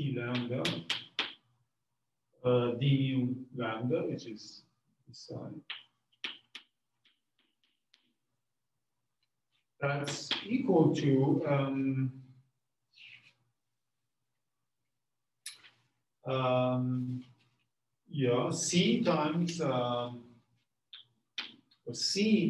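A man lectures calmly, his voice close and clear.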